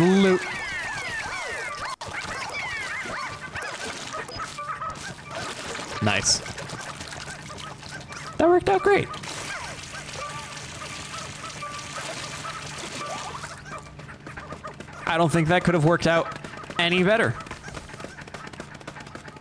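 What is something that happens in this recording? Game music and chirpy sound effects play throughout.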